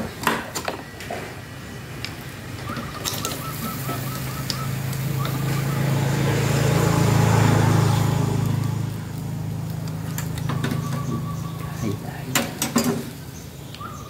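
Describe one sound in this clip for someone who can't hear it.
Metal tongs clink against a grill.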